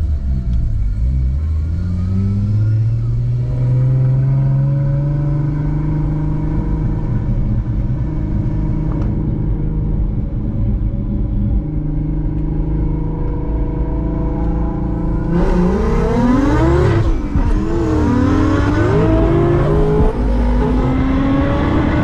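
A car engine roars and revs up and down inside the car.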